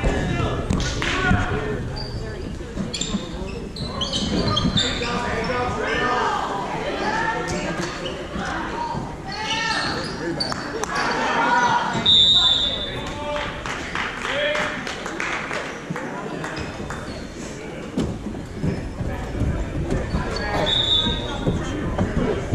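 Spectators chatter and call out nearby in an echoing gym.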